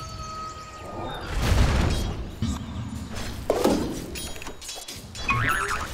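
Weapons clash in a skirmish.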